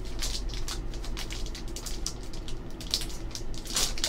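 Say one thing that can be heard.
A plastic foil pack crinkles in hands.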